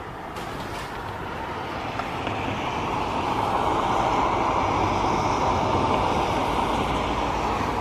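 Steady rain hisses outdoors, growing louder.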